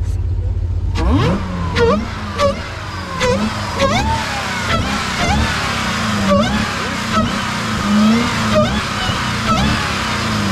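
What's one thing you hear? An engine revs again and again with a rising and falling whine.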